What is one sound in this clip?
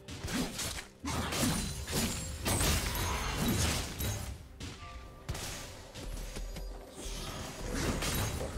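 Game spell blasts and sword hits clash rapidly in a fight.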